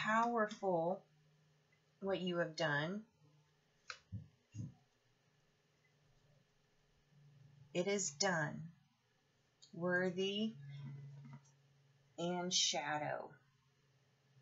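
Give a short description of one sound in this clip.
A woman speaks calmly and close by, in short phrases.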